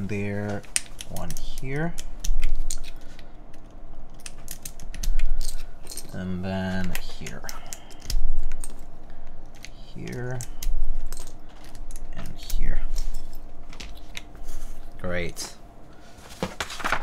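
Keys clack rapidly on a mechanical keyboard, close by.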